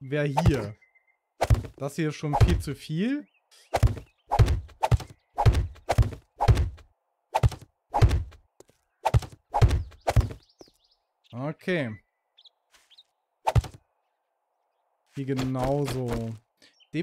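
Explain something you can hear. A man talks animatedly into a close microphone.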